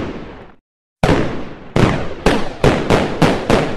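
Fireworks burst with sharp bangs.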